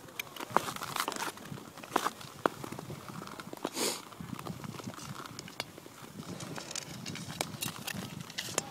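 Ice skates scrape and glide over rough ice close by.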